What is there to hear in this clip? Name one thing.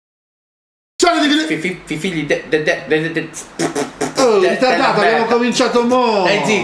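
A man raps rhythmically and with animation, close by.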